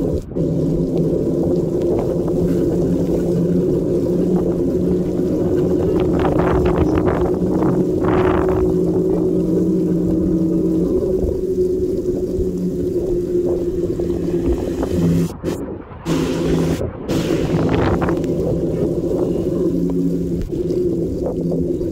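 A car engine drones steadily from close by.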